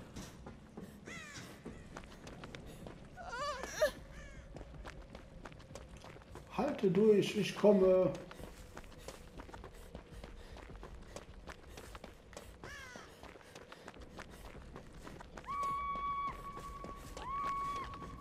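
Quick footsteps run over gravelly ground.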